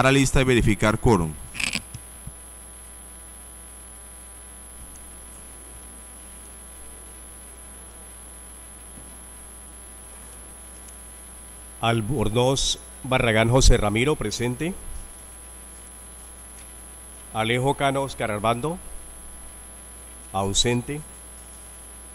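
A man speaks briefly through a microphone over loudspeakers, in short bursts.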